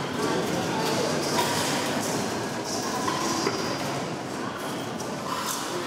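Metal tins clink together as they are stacked.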